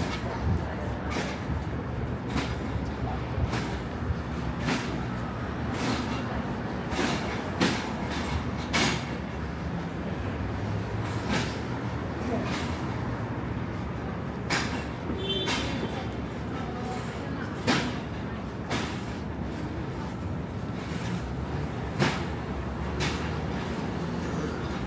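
City traffic hums and rumbles nearby.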